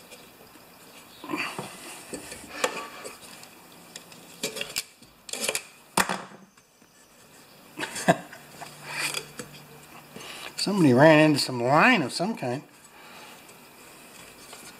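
A metal mower blade clanks and scrapes as a hand wiggles it.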